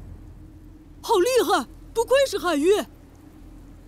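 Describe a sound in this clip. A boy exclaims with excitement.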